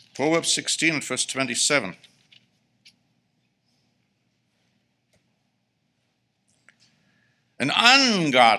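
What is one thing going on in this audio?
A middle-aged man speaks calmly and clearly through a microphone, pausing between phrases.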